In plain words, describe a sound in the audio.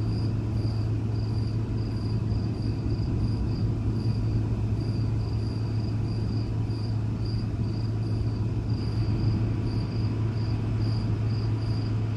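Thunder rumbles in the distance.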